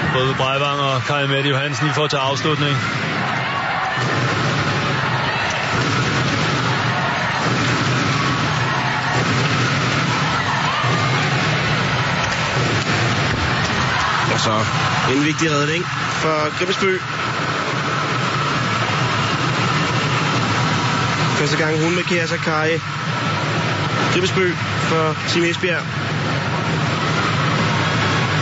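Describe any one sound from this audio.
A large indoor crowd roars and cheers steadily in an echoing hall.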